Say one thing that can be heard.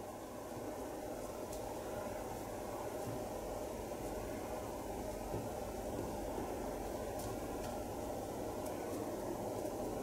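Gummy sweets are set down softly on a cloth, one by one.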